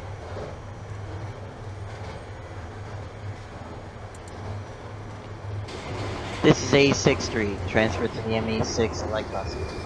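A subway train rumbles along the track.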